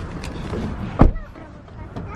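A car door unlatches with a sharp click.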